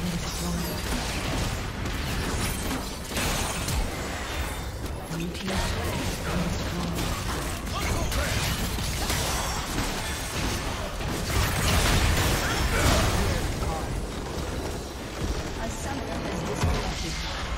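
Battle sound effects from a video game crackle, whoosh and clash rapidly.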